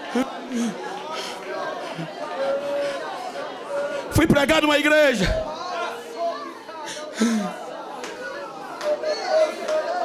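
A man speaks loudly and fervently through a microphone in a large echoing hall.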